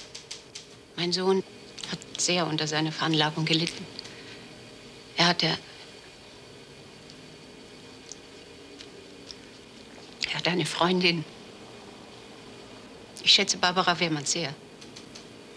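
A middle-aged woman speaks calmly nearby.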